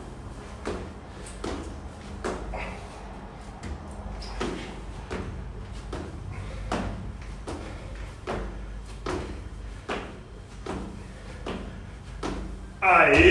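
A man breathes out sharply with each push-up.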